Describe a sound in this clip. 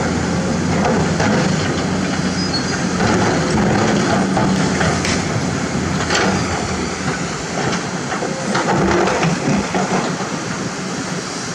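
Rocks clatter and scrape against an excavator bucket.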